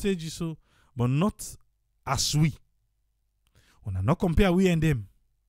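An elderly man speaks into a microphone.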